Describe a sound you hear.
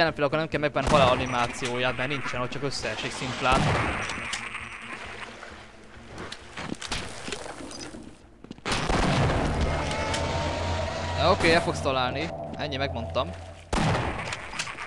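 A shotgun fires in loud, sharp blasts.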